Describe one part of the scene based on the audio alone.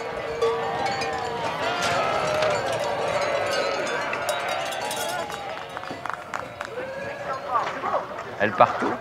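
Many sheep bleat loudly and continuously, close by.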